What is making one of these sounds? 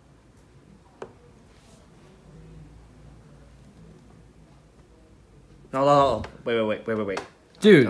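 A chess piece clicks on a wooden board.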